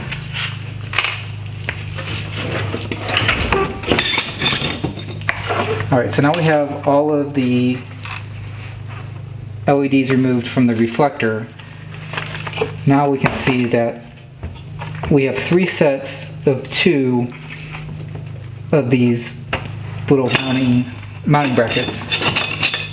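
Hard plastic parts click and rattle as they are handled.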